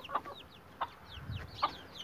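A chicken clucks softly nearby.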